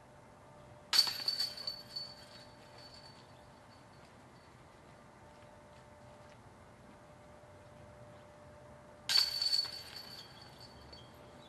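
A flying disc crashes into metal chains, which rattle and jingle.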